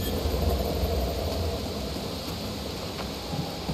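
Footsteps scuff on rocky ground.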